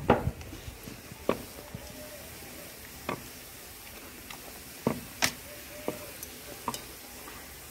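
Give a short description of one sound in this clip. A metal ladle clinks against the pan.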